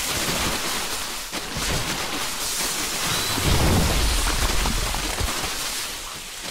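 Rapid laser blasts crackle in a battle.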